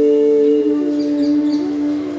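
A hand drum is tapped lightly.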